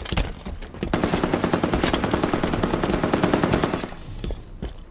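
Rapid automatic rifle fire rattles steadily.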